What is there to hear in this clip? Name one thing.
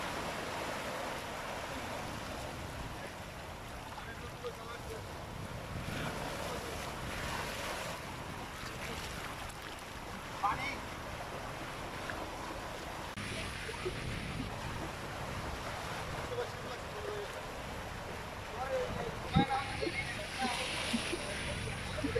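Waves lap and splash on open water.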